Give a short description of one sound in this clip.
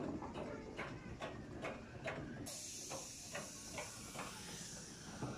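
A ride car clatters rhythmically along a track.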